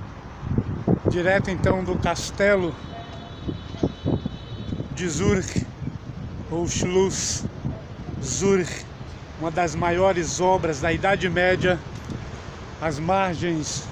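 A middle-aged man talks with animation, close by.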